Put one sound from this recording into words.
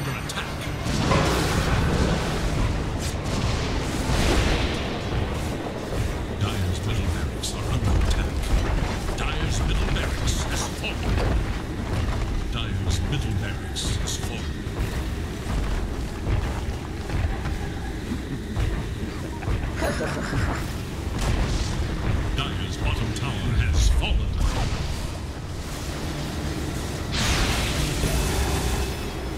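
Magical blasts crackle and boom in a fight.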